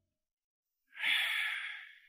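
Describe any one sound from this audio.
A man breathes out smoke with a soft hiss.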